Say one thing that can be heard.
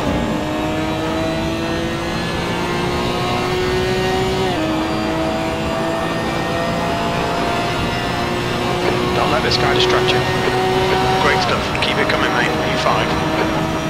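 A racing car engine drones steadily, rising in pitch as it revs.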